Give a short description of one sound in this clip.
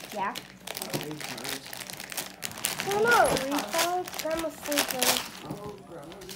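A plastic packet crinkles and rustles as it is torn open.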